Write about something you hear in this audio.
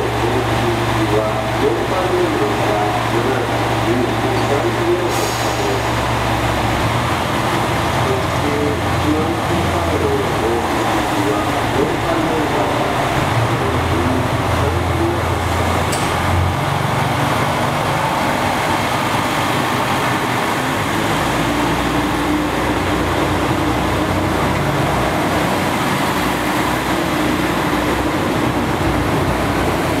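Train wheels rumble and clatter on the rails as a train rolls past close by.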